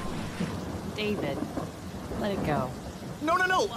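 A young woman speaks flatly.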